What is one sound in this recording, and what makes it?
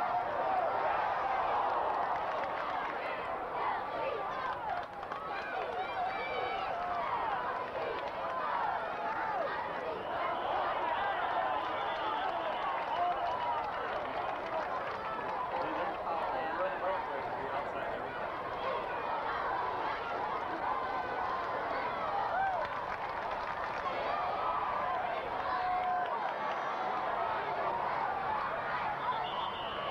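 A large crowd cheers and chatters from the stands throughout.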